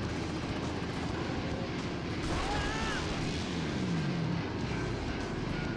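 A motorbike engine roars loudly.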